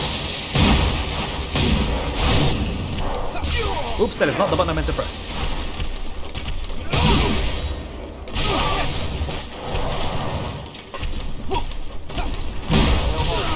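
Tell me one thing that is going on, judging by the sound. A monster growls and shrieks.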